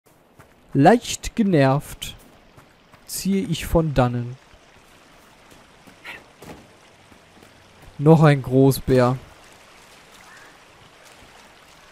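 Footsteps run quickly over grass and stones.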